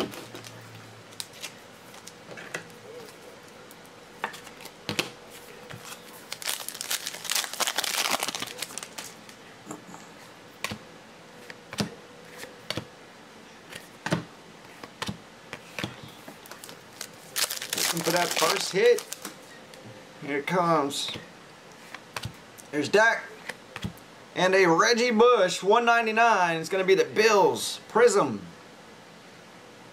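A plastic card case clicks and taps on a table.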